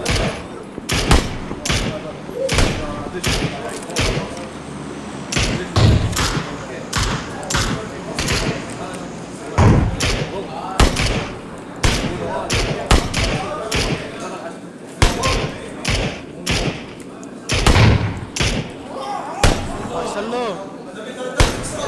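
Rifle shots crack repeatedly, echoing across open ground.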